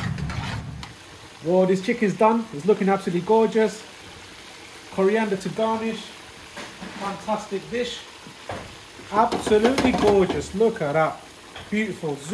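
A sauce bubbles gently as it simmers.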